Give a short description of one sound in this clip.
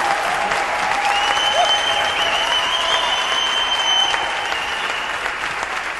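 Guests clap in a large echoing hall.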